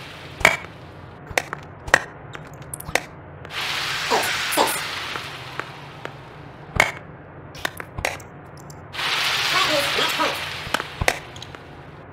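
A tennis ball is struck sharply by a racket, back and forth.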